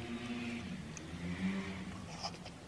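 A young woman bites into something soft.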